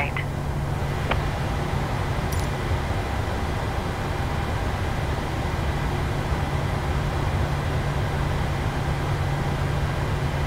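Jet engines hum steadily while an airliner taxis.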